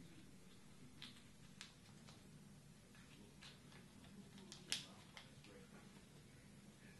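Paper packaging rustles and crinkles.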